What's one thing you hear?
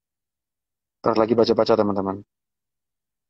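A young man speaks briefly and close to the microphone.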